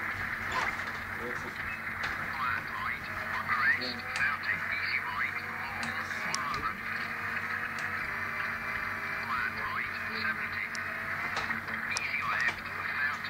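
Tyres skid and squeal on gravel through a loudspeaker.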